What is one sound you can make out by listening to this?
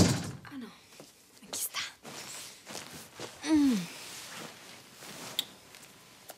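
Bedding rustles as a young woman climbs onto a bed.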